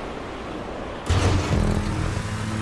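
A car lands hard with a heavy thud.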